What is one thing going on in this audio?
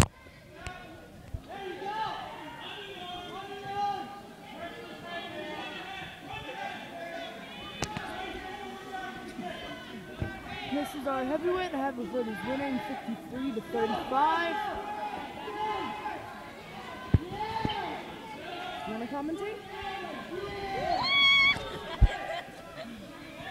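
A group of young people chatter in a large echoing hall.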